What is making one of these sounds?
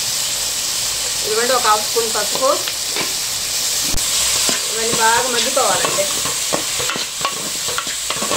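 A metal ladle scrapes and knocks against a pot.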